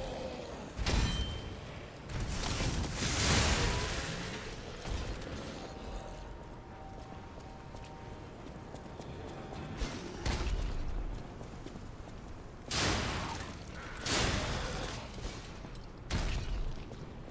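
Metal weapons clash and thud in a fight.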